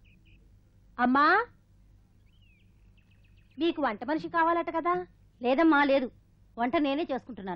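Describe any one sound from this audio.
A woman calls out loudly from close by.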